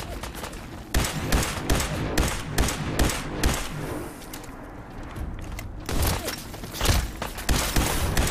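A heavy gun fires rapid bursts of shots.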